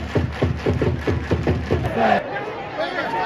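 A large crowd chants loudly and rhythmically in an open stadium.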